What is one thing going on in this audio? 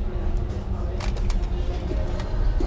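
A sheet of card rustles as it is handled.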